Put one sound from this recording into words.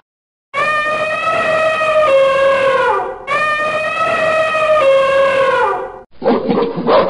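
An elephant trumpets loudly.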